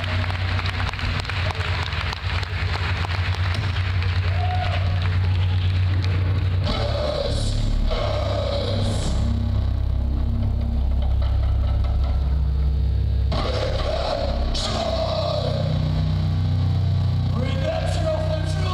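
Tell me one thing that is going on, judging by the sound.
An electric guitar plays distorted chords.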